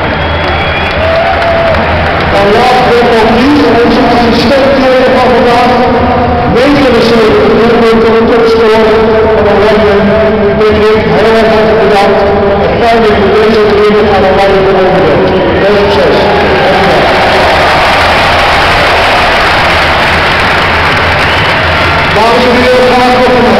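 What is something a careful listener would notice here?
A large stadium crowd sings together loudly, echoing across the open stands.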